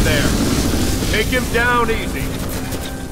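A man calls out a warning.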